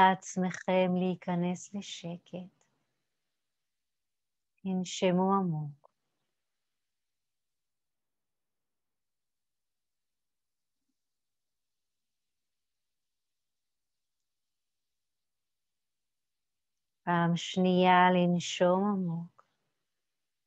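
A woman speaks calmly and softly, close by, with long pauses.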